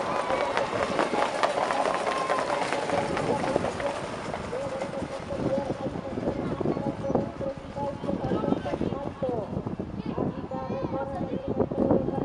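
Horses' hooves pound on a dirt track.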